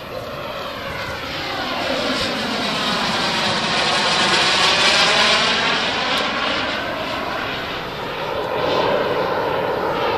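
A model jet engine whines loudly as the plane passes overhead, rising and falling in pitch.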